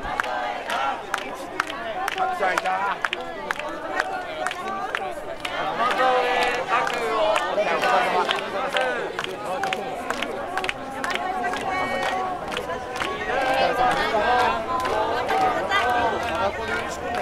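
A young man talks warmly and politely with people close by.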